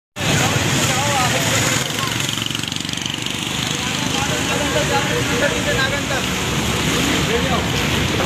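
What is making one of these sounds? A bus engine rumbles nearby.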